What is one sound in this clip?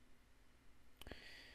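A young man speaks calmly into a close microphone.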